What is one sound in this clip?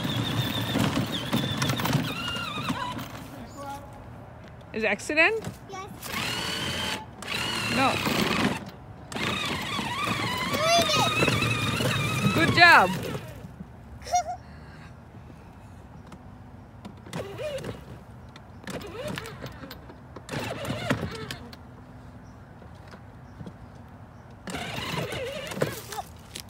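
A toy electric car's motor whirs softly.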